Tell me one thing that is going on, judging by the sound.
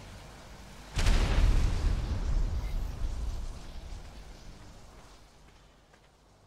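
A deep, rumbling roar booms out and slowly fades.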